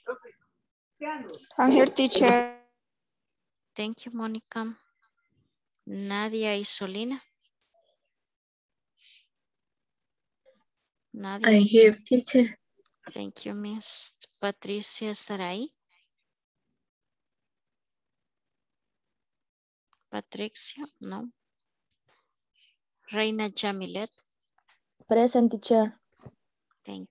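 A woman speaks in short bursts over an online call.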